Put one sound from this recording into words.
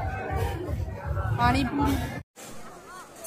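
A crowd of men and women chatters loudly close by.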